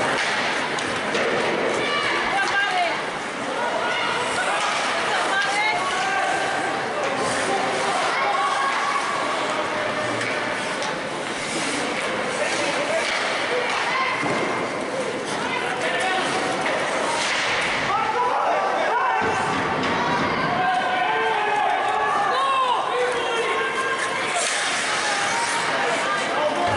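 A small crowd chatters and calls out in a large echoing arena.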